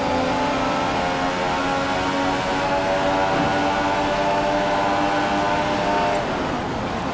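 A turbo V6 Formula One car engine wails at high revs, climbing through the gears.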